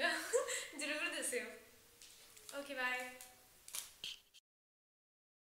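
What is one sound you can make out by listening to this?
A young woman speaks cheerfully and close to a microphone.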